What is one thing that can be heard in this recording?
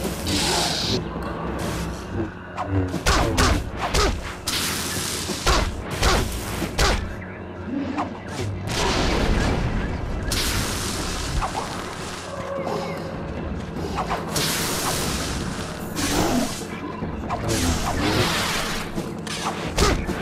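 A laser sword hums and swooshes through the air.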